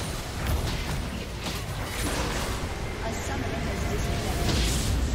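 Game attacks thud and clash.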